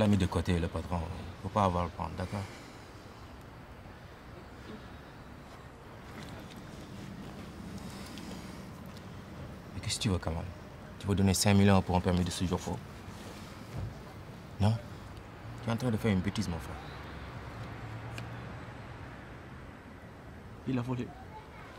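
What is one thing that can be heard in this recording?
A young man talks calmly and quietly nearby.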